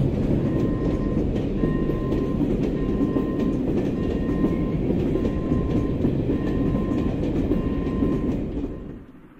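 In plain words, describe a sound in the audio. Train wheels squeal in a regular rhythm on the track.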